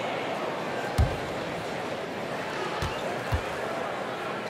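A basketball bounces on a hard court a few times.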